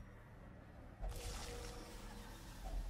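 A spade digs into soft earth.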